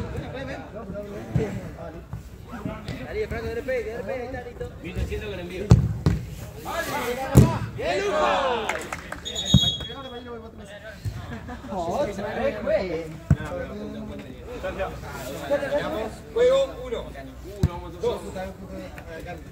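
Young boys shout and call out to each other outdoors.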